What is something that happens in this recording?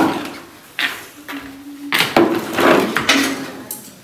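A plastic stool thumps onto a hard floor.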